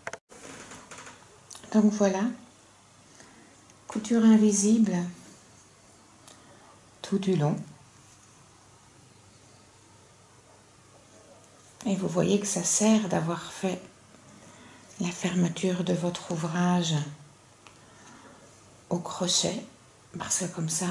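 Soft yarn rustles as hands smooth and pull at knitted fabric.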